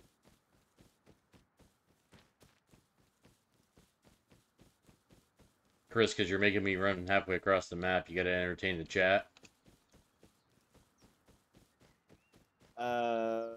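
Footsteps pad steadily through grass.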